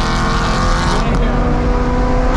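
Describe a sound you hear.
A car engine briefly drops in pitch at a gear change, then climbs again.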